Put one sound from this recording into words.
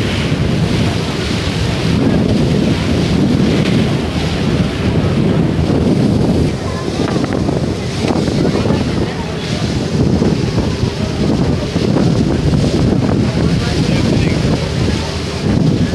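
Wind blows hard and rumbles outdoors.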